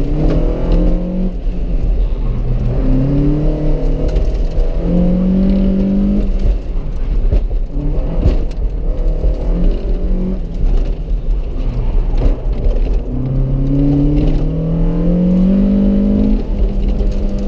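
A car engine revs up and down loudly from inside the car.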